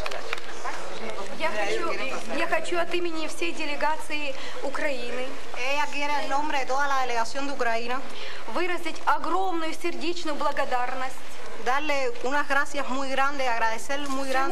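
Women sing together in a group.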